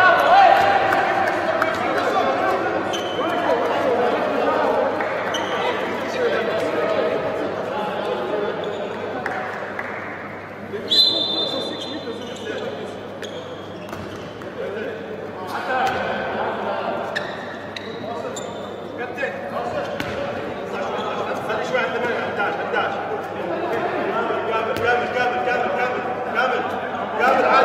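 A handball bounces on the floor.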